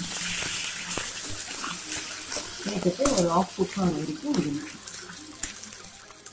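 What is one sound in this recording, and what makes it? A metal spoon scrapes and clatters against a steel pan while stirring food.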